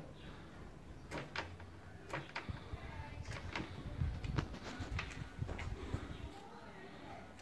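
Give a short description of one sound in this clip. Wires rustle and click as they are twisted together by hand, close by.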